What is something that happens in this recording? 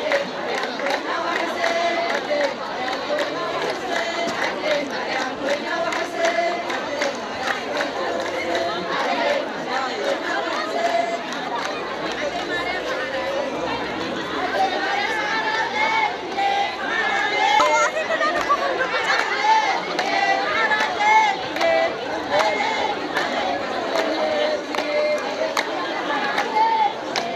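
People clap their hands in a steady rhythm.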